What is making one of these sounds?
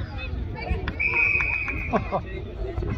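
A referee's whistle blows a short, shrill blast.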